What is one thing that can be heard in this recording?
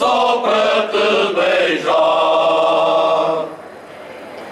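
A choir of older men sings loudly outdoors.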